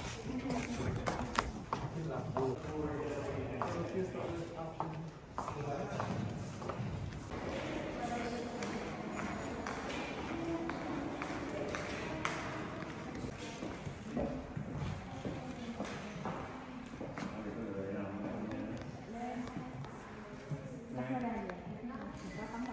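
Visitors talk quietly in a large echoing hall.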